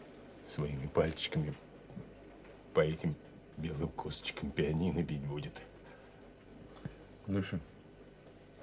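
A middle-aged man speaks calmly in short phrases, close by.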